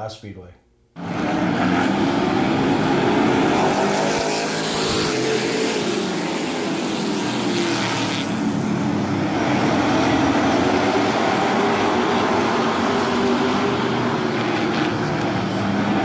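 Race cars roar around an oval track.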